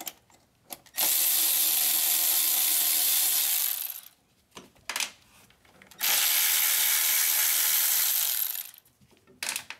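An electric ratchet whirs in loud bursts.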